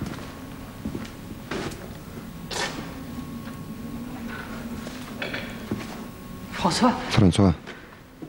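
Footsteps knock on a wooden floor in a quiet, echoing room.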